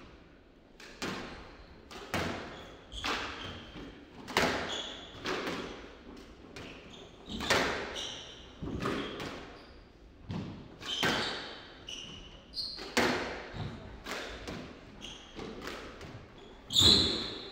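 A squash ball smacks hard against the walls in a fast rally, echoing around the court.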